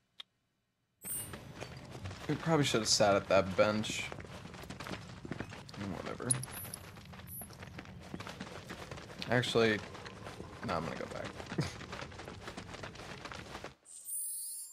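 Footsteps crunch on gravel at a run.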